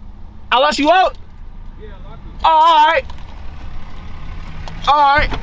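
A young man yells loudly up close in short bursts.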